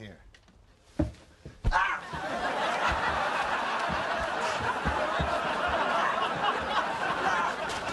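Bodies thump and scuffle as two men grapple.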